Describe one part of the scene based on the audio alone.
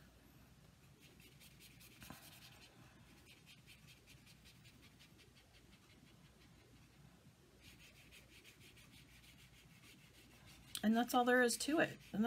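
A wet paintbrush strokes softly across paper.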